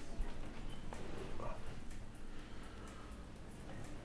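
A sofa cushion rustles and creaks as a man sits down.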